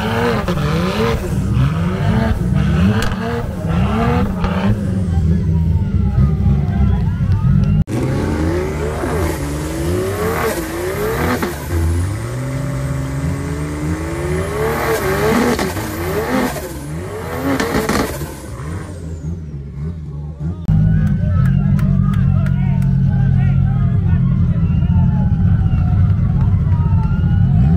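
A car engine revs hard up and down, close by.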